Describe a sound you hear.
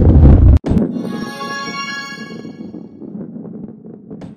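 A short victory jingle chimes.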